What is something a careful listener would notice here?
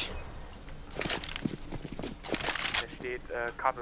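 Rifle shots ring out in sharp bursts.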